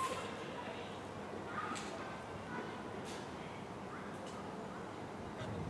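A violin plays softly.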